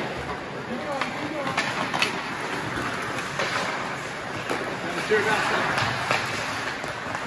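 Hockey sticks click sharply against the puck.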